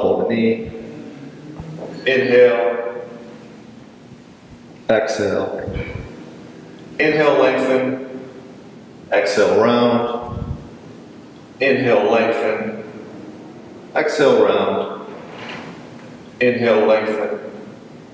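A man speaks calmly in short instructions, heard through a microphone in a slightly echoing room.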